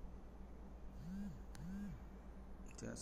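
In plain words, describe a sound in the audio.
A phone notification chimes twice.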